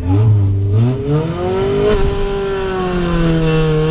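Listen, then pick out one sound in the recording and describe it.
A race car engine roars and climbs in pitch as the car speeds away.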